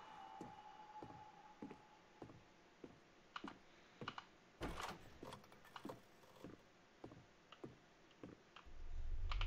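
Footsteps thud on a wooden floor at a steady walking pace.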